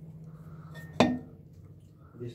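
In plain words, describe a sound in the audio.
A metal exhaust pipe clinks as it is fitted into place.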